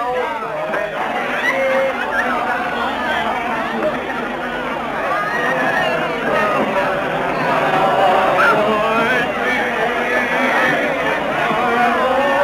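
A crowd chatters and laughs loudly all around.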